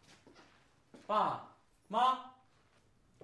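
A man calls out loudly twice nearby.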